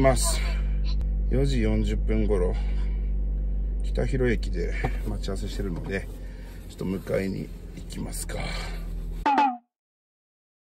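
A young man talks to himself, close to a microphone in a car.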